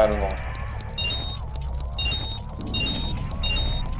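Bright chiming jingles ring out several times in quick succession.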